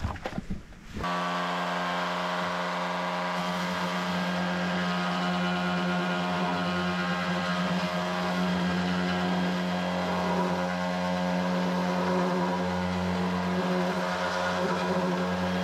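An electric sander whirs steadily and loudly, grinding against wood.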